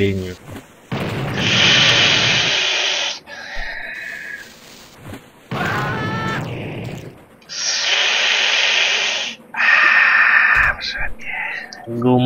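A lit dynamite fuse hisses and sizzles.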